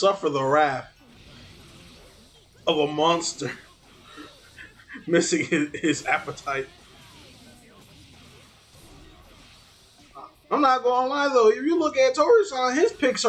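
Fighting game hits and effects clash and whoosh.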